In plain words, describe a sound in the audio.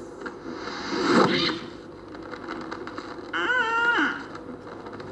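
A young girl speaks close by, in a clear, earnest voice.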